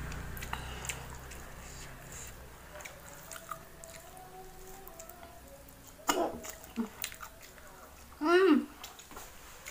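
A young woman chews crunchy food close by with soft smacking sounds.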